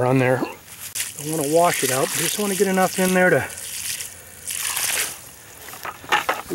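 Water pours from a bucket and splashes onto the ground.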